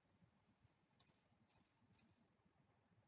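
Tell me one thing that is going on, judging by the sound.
Dice rattle briefly as they are rolled.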